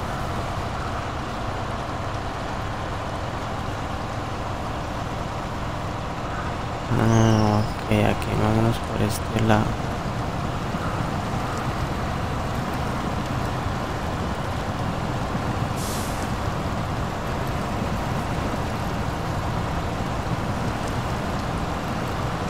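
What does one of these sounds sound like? A truck engine rumbles and drones steadily.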